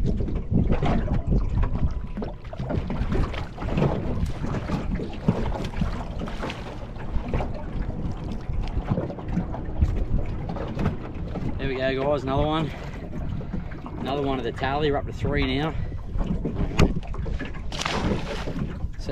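Water laps against a small boat's hull.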